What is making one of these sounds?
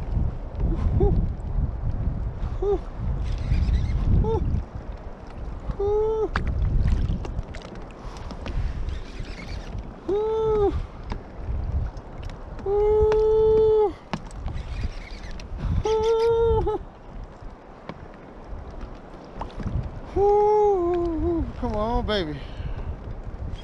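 A fishing reel's drag whines in short bursts.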